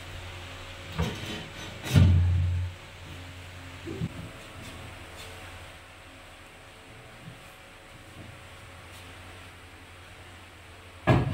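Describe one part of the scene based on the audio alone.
Small objects clatter and knock on a wooden shelf.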